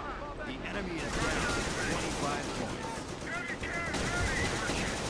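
Explosions boom and crackle in battle.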